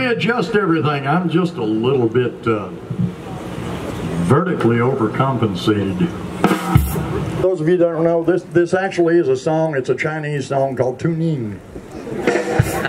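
A country band plays live music outdoors.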